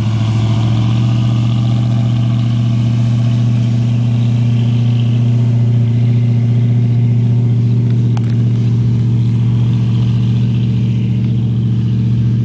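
An airboat engine drones steadily in the distance.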